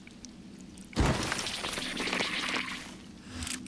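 A small glass vial flies through the air with a whoosh.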